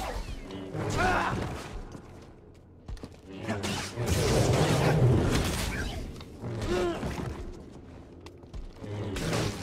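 Energy blades hum and whoosh as they swing.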